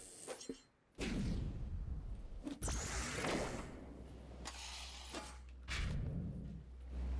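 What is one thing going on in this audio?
Metal rails screech as a game character grinds along them.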